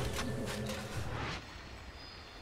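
Fantasy battle sounds of clashing weapons and bursting spells ring out loudly.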